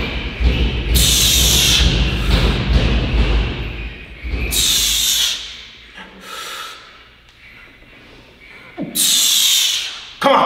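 A young man breathes out hard and loud between squats.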